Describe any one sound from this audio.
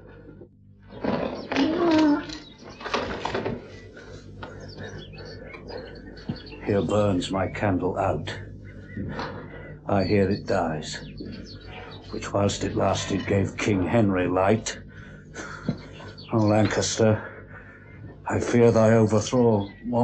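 A man speaks weakly and hoarsely, close by, in short broken phrases.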